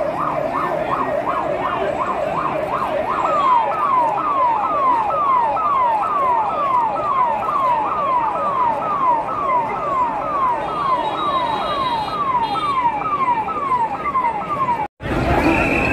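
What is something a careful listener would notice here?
A crowd of men shouts and chants outdoors.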